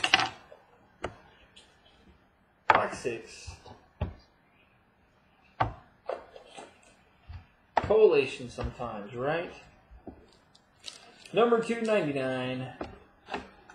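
Cards tap and slide against each other.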